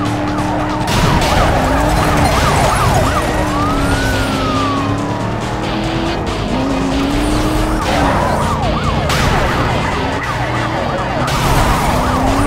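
Cars crash and scrape together with a loud metallic crunch.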